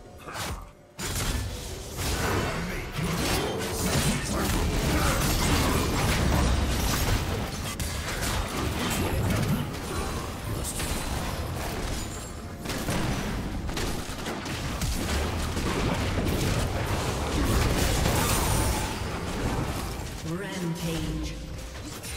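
Game spells and weapon hits clash and burst rapidly.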